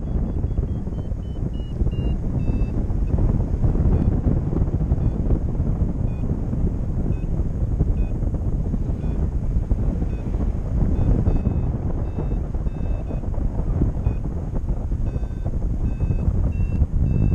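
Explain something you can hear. Strong wind rushes and buffets loudly against the microphone outdoors.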